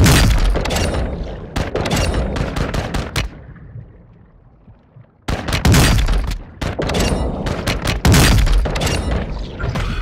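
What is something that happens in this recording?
Muffled gunshots fire in quick bursts underwater.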